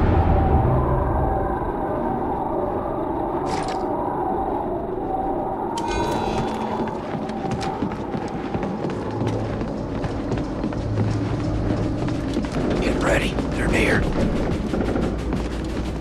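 A low droning hum fills a large echoing space.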